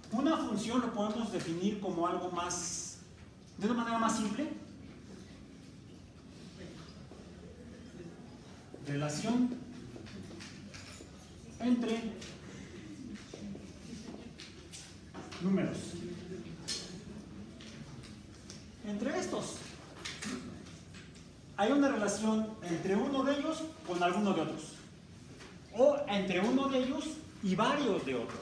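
A man speaks calmly in a room with some echo, pausing often.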